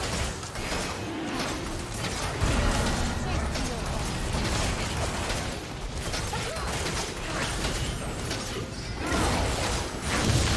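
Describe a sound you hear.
Fantasy battle effects of spell blasts and gunfire clash without pause.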